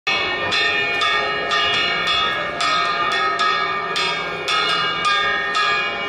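A woman strikes a ringing metal gong in quick, steady beats.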